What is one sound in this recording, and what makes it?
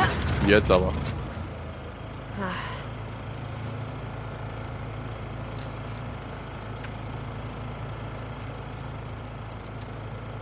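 A small generator engine starts and runs with a steady low hum.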